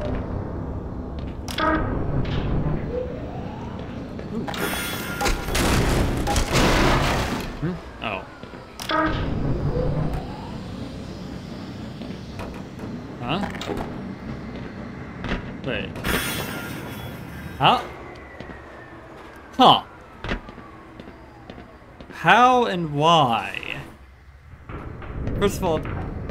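A rail cart rumbles and clatters along metal tracks in an echoing tunnel.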